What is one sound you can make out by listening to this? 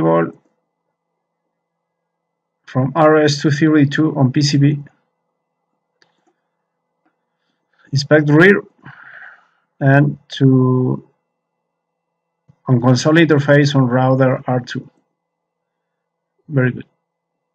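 A man speaks calmly and closely into a microphone, in short bursts with pauses.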